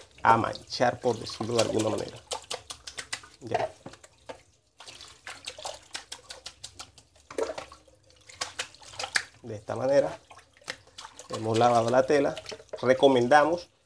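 A hand rubs and pats a wet sheet.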